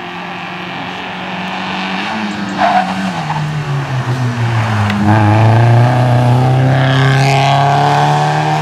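A rally car engine roars and revs hard, dropping in pitch as it shifts gears.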